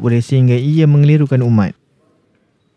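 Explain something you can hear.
A man chants loudly through a microphone.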